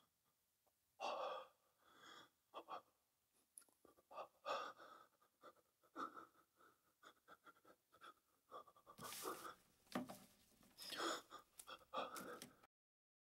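A man speaks weakly and hoarsely, close by, with gasping breaths.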